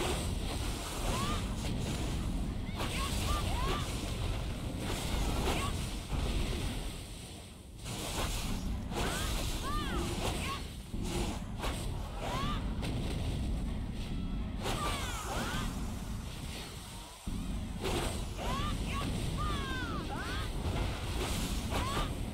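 Sword strikes and spell blasts crack and whoosh during a fight.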